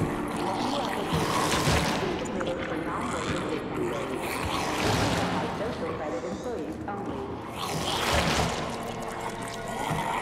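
A creature growls and snarls close by.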